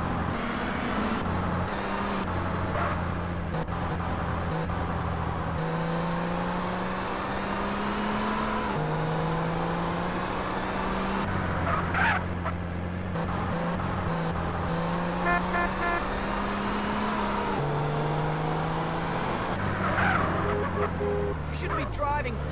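A car engine revs and shifts gears as it drives along a road.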